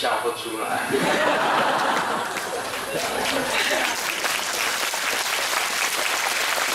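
A middle-aged man laughs heartily into a microphone.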